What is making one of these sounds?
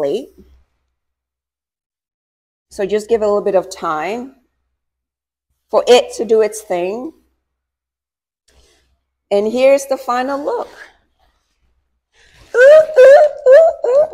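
A young woman talks with animation in short bursts close by.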